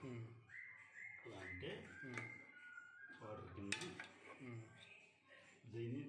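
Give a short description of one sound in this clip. A spoon scrapes and stirs food in a metal pot.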